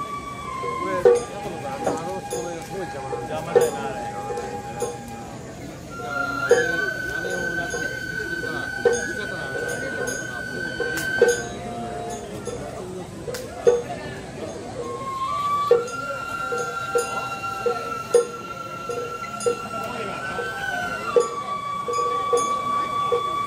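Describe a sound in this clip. A bamboo flute plays long, high held notes.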